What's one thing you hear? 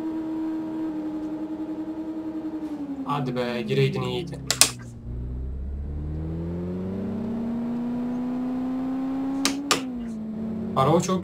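A car engine hums steadily, dropping in pitch and then revving back up.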